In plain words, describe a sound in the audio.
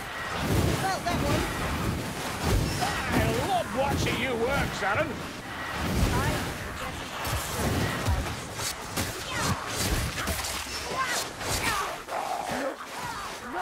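Heavy melee blows thud into creatures.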